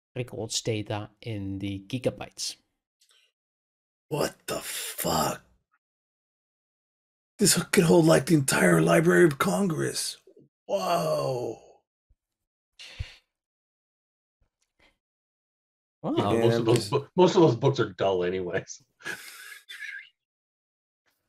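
Several men talk in turn over an online call, with animation.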